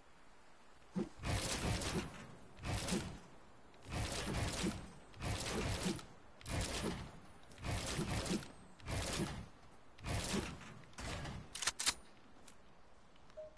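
Building pieces snap into place with rhythmic clacks.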